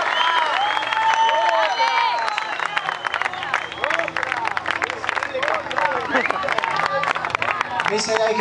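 A crowd claps along.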